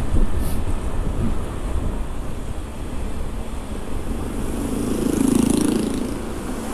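Motorbike engines hum steadily as they ride past.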